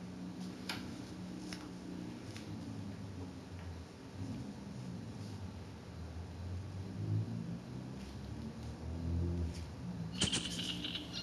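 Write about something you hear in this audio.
A clock ticks softly and steadily.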